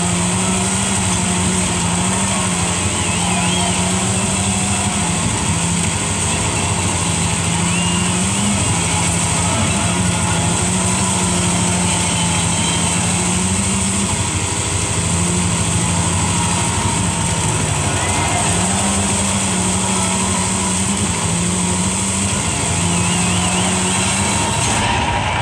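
A game car's engine drones steadily, with its pitch shifting as it changes gear.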